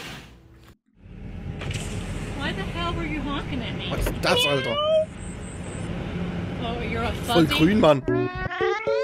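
A woman speaks loudly and agitatedly outdoors.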